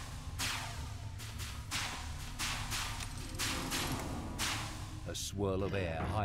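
Footsteps thud rhythmically on a stone floor.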